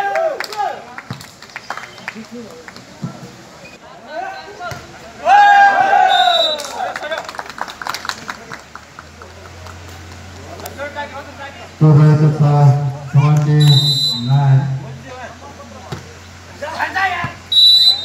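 Young men shout and call out during a volleyball game outdoors.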